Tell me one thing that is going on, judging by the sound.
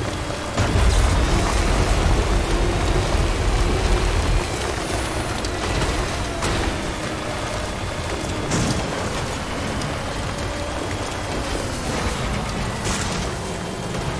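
Rocks knock and thud under a vehicle's tyres.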